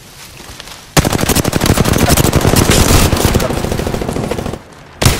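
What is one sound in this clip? A rapid burst of automatic gunfire rattles loudly.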